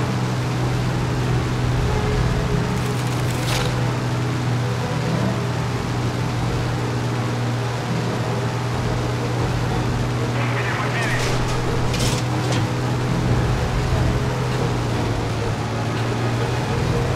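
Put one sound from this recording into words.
A propeller plane's engine drones steadily at close range.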